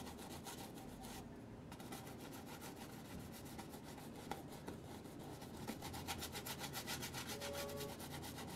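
A brush scrapes in quick, rhythmic strokes across a canvas.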